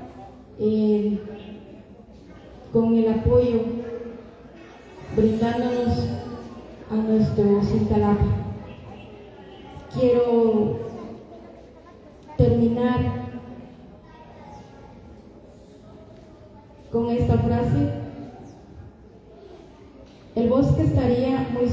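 A woman speaks into a microphone in bursts, heard through a loudspeaker in a room with some echo.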